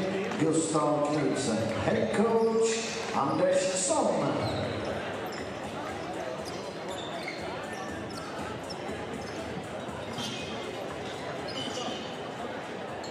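Sneakers squeak on a hardwood court in a large echoing hall.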